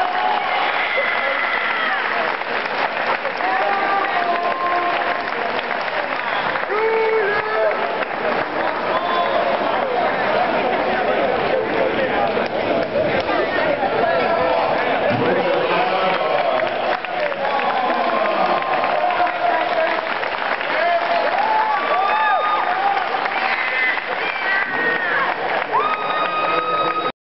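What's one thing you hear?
A crowd of spectators talks and shouts throughout a large echoing hall.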